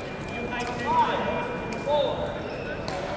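Shoes squeak sharply on the court floor.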